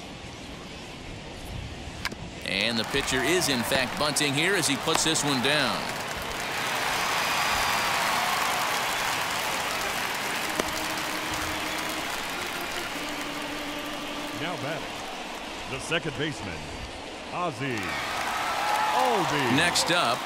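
A stadium crowd murmurs and cheers.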